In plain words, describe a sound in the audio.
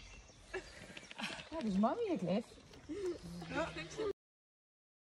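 A woman talks nearby in a cheerful voice.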